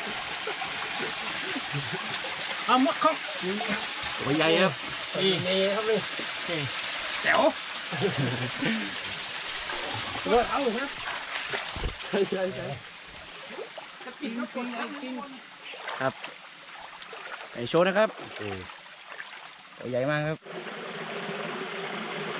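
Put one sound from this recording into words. A stream of water flows and splashes over rocks.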